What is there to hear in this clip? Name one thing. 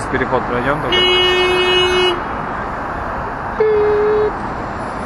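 Traffic hums steadily on a busy city street outdoors.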